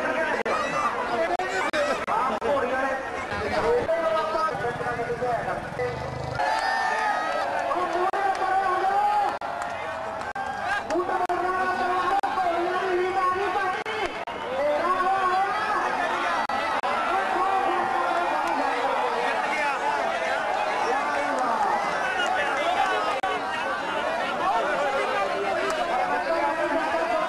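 A crowd of men talks and calls out loudly nearby outdoors.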